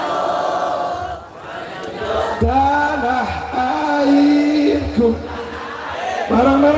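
A man sings into a microphone through loudspeakers, in long held notes.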